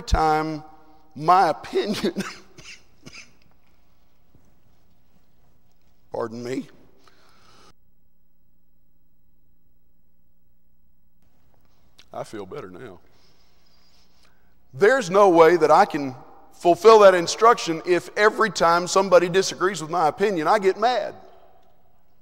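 A man preaches through a microphone in a large echoing hall, speaking in bursts with long pauses.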